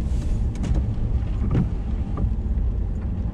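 A windscreen wiper swipes across the glass.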